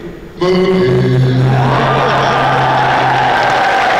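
An elderly man laughs into a microphone.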